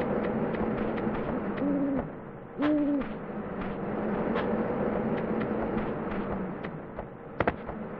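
Quick light footsteps patter across roof tiles.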